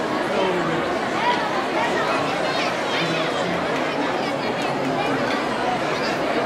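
A large crowd of children chatters and shouts loudly outdoors.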